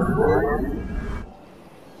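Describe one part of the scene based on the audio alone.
Electronic weapons zap and blast in a battle.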